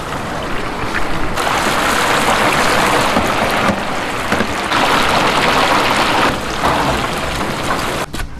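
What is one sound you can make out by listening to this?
Hot oil bubbles and sizzles loudly around frying food.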